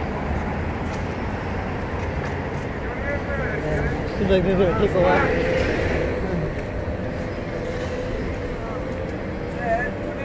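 A bus engine rumbles as it passes close by.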